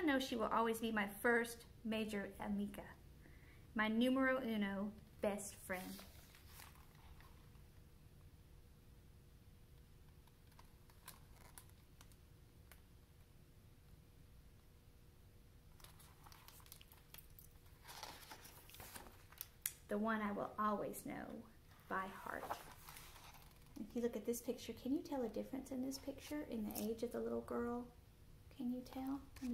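A middle-aged woman speaks and reads aloud warmly, close by.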